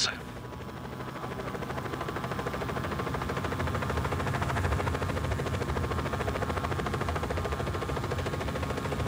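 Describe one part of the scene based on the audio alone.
A helicopter's rotor thumps steadily as it flies, growing louder.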